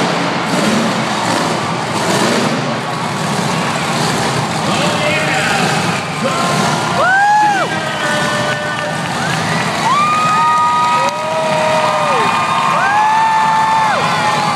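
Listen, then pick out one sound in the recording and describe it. A monster truck engine roars and revs loudly in a large echoing arena.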